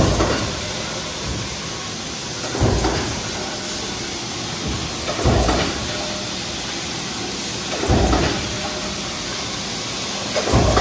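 A heavy press thumps at a slow, regular pace.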